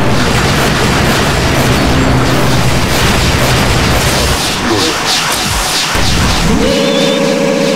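Fighting game explosions and energy blasts roar.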